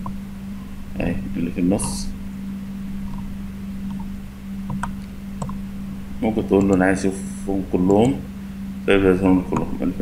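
A man talks calmly into a close microphone, in short bursts.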